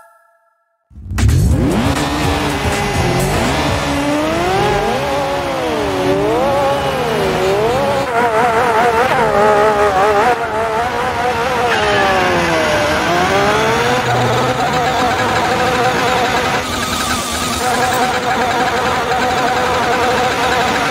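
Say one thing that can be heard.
A racing car engine revs high and rises and falls in pitch as it shifts through the gears.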